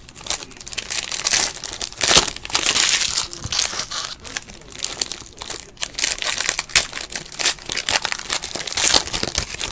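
A plastic card pack crinkles and rustles close by as hands tear it open.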